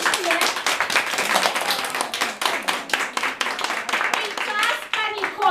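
Adults and children clap their hands in a quick rhythm.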